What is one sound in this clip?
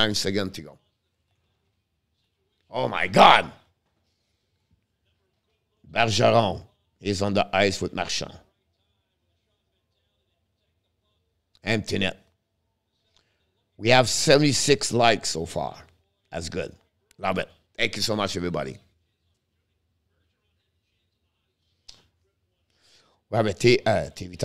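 A middle-aged man speaks casually into a close microphone, in short bursts with pauses.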